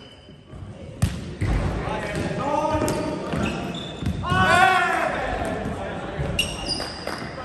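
A volleyball is struck with a sharp slap in an echoing gym hall.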